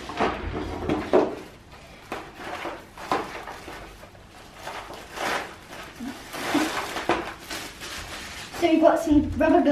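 Cardboard and plastic packaging rustles and crinkles.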